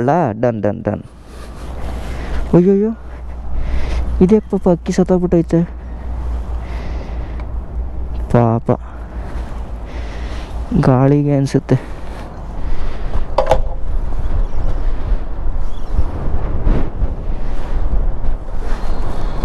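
Wind blows across a microphone outdoors.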